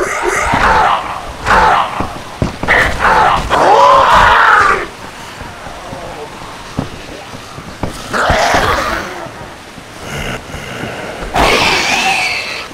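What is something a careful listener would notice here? Heavy blows thud against a body.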